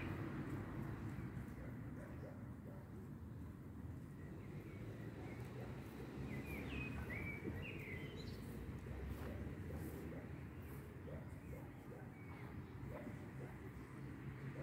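Footsteps fall softly on grass.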